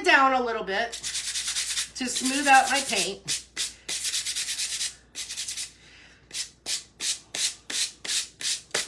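A sponge dabs rapidly and repeatedly against a hard surface.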